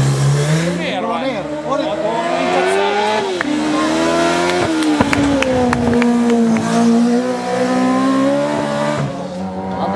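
A second sidecar motorcycle engine roars past, revving up through the corner.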